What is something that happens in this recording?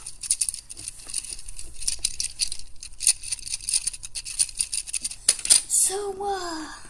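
Plastic toy bricks click and rattle as they are handled.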